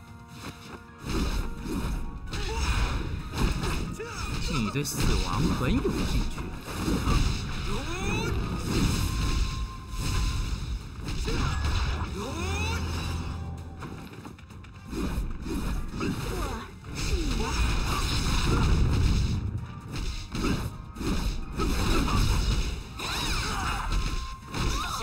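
Magic spell effects whoosh and crackle in a fast fight.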